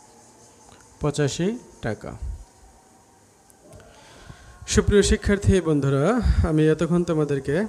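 A man speaks calmly into a close microphone.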